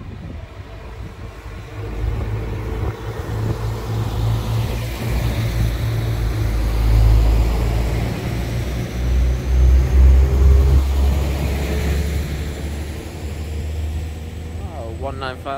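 A train rumbles past close by and fades away.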